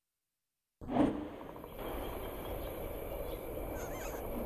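Waves wash softly against a shore.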